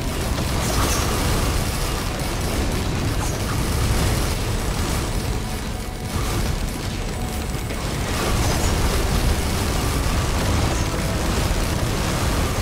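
Game spells and weapons crackle and blast in a rapid stream of electronic effects.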